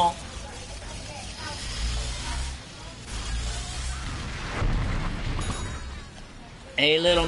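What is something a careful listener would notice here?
A laser weapon fires with buzzing electronic zaps.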